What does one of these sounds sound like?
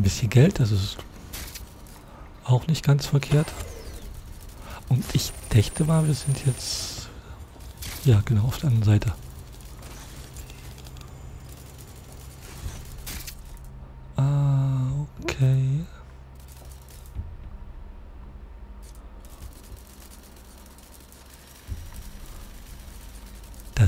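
A small robot's metal legs patter and click as it scurries.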